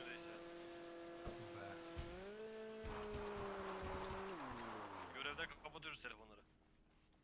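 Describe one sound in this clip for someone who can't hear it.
A jet ski engine hums loudly and winds down.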